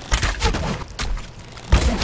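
A weapon strikes a creature.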